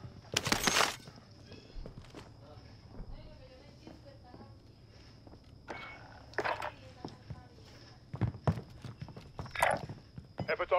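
Gunshots crack in short loud bursts.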